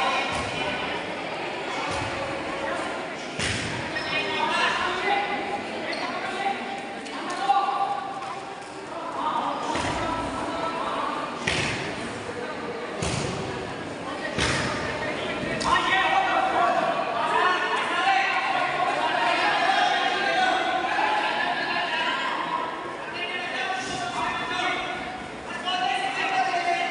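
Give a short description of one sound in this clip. Men shout encouragement in a large echoing hall.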